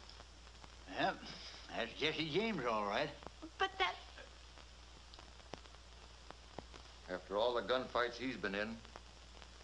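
An elderly man speaks in a gruff, animated voice close by.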